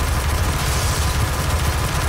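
A heavy gun fires rapid shots.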